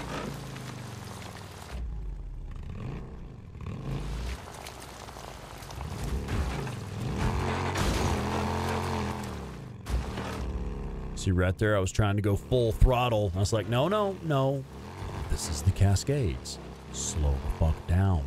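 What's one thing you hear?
A motorcycle engine hums and revs steadily.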